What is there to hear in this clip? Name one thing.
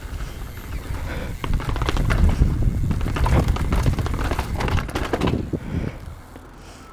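A bicycle rattles and thumps down concrete steps.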